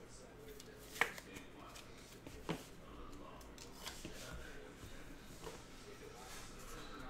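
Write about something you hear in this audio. Plastic card cases click and tap on a table.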